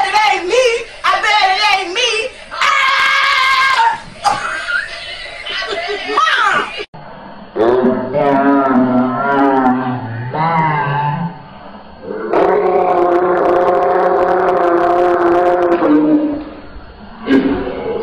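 A woman sings loudly and wildly, close by, with long wailing held notes.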